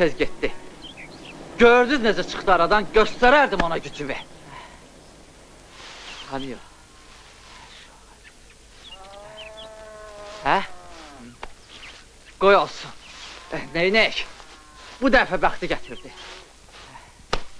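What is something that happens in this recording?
A man sings loudly and with feeling, close by.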